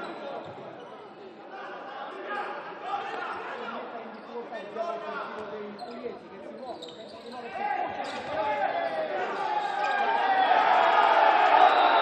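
Players' shoes squeak on a hall floor.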